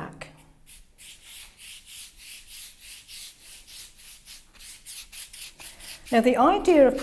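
A brush swishes back and forth across paper in quick, even strokes.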